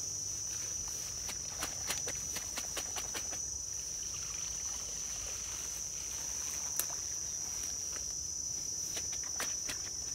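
Grass rustles and swishes as a man pushes through it.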